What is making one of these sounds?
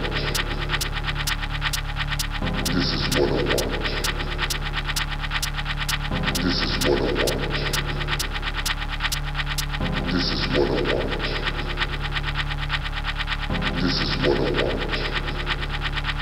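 Loud electronic dance music plays with a steady, thumping beat and crisp ticking hats.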